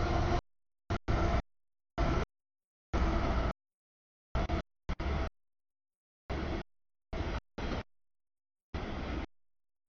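A freight train rumbles and clatters past close by, in choppy bursts.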